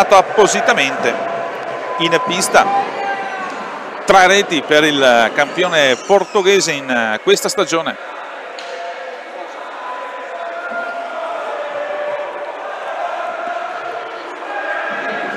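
Roller skates roll across a wooden floor in a large echoing hall.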